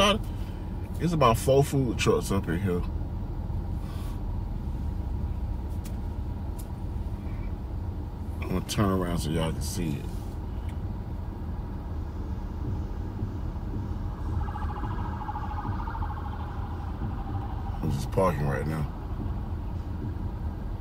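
A car engine hums low and steadily.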